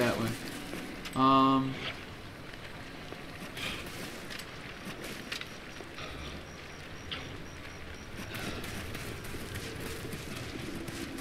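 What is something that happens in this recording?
A man speaks quietly and casually into a nearby microphone.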